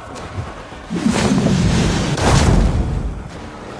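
A goat rams into someone with a heavy thud.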